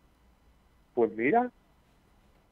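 A man says a few words briefly into a close microphone.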